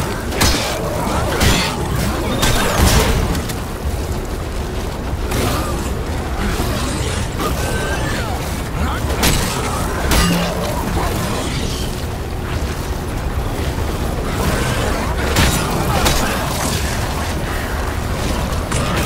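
Guns fire in sharp bursts.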